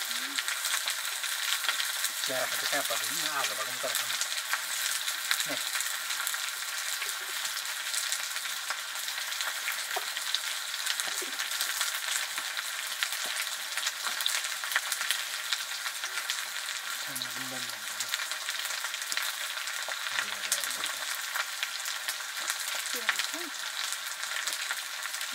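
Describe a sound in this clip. Food sizzles in hot oil in a pan.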